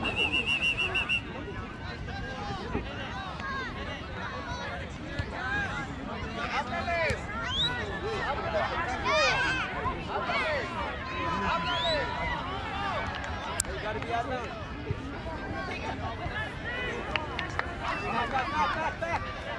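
A crowd of men, women and children chatter and call out outdoors.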